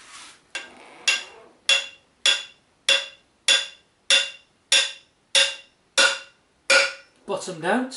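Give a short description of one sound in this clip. A metal tool taps rhythmically against a bicycle wheel.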